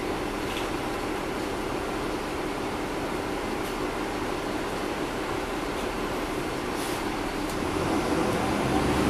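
A bus engine hums steadily, heard from inside the cabin.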